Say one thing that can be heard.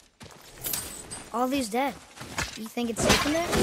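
A young boy speaks calmly.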